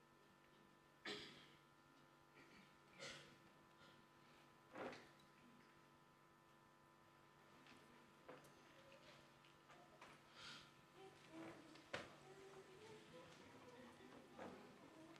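A middle-aged woman sobs quietly.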